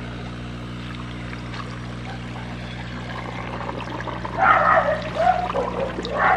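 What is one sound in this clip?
A plastic tub of stones scrapes and knocks as it is lifted.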